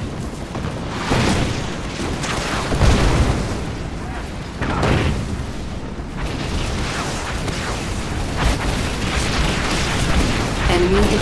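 Explosions boom in heavy bursts.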